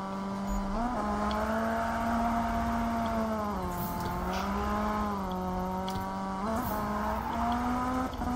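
Tyres screech on asphalt during a drift.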